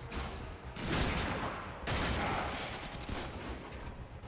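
Loud energy blasts roar in bursts.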